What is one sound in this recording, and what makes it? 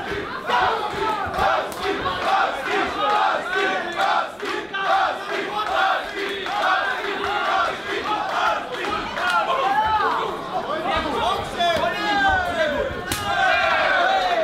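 Gloved fists thud against a body.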